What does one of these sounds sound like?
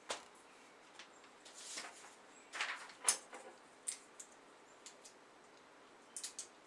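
Small objects click and rustle in someone's hands.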